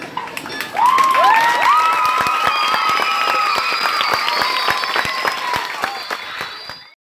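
Children clap their hands.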